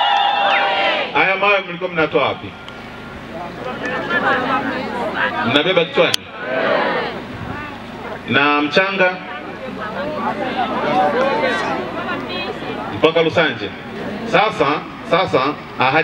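A man speaks with emphasis into a microphone outdoors.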